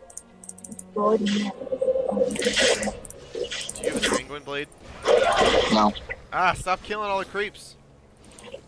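Magic spells whoosh and crackle in a clash of fighters.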